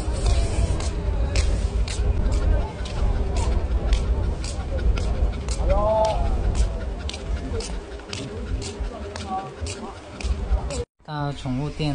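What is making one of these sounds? Sandals slap steadily on pavement with each footstep.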